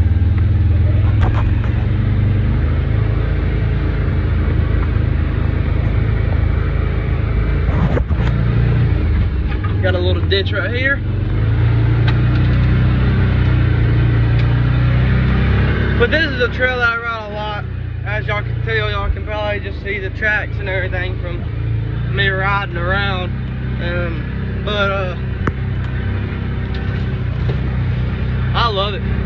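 A vehicle engine rumbles steadily, growing quieter partway through.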